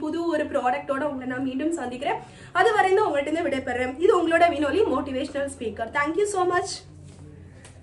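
A woman talks to the listener with animation, close to a microphone.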